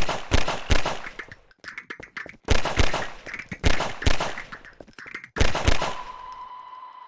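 Pistol shots ring out one after another.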